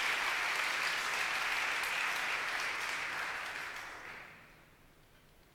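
An audience claps and applauds in a large echoing hall.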